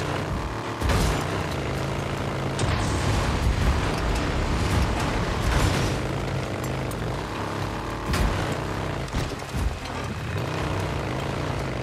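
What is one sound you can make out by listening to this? Tyres crunch over loose dirt and gravel.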